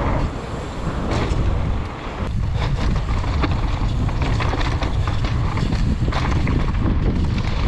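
Bicycle tyres crunch and rattle over loose gravel and rocks.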